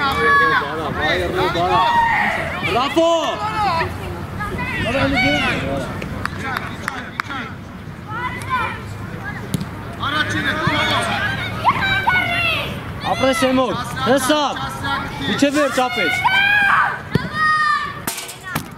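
Children shout and call out loudly outdoors.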